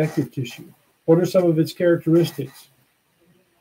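An older man speaks briefly and calmly, close to the microphone.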